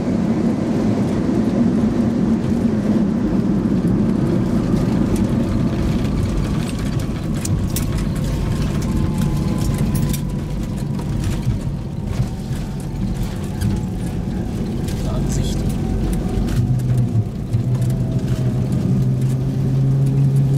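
Jet engines roar steadily inside an airliner cabin as it rolls along the runway.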